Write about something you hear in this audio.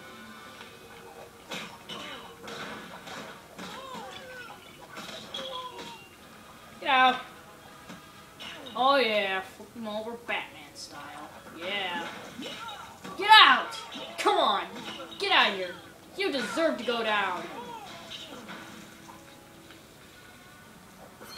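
Punches, smashes and crashes from a video game fight play through a television speaker.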